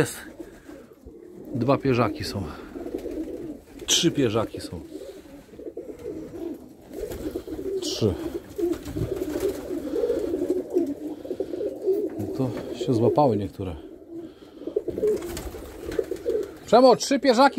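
Pigeons coo steadily close by.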